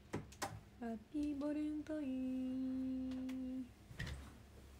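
A young woman hums a short, steady sung tone.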